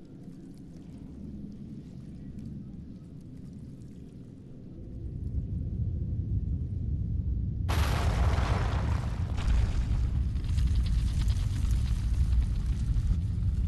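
Thick liquid churns and swirls around a sword blade.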